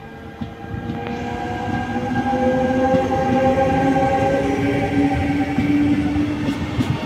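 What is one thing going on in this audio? Train wheels and motors whine loudly on the rails.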